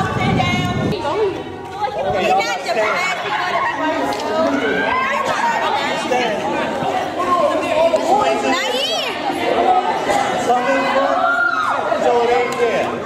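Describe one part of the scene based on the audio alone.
A group of young people chatter and call out outdoors.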